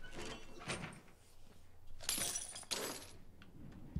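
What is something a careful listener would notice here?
Bolt cutters snap through a metal chain with a sharp clank.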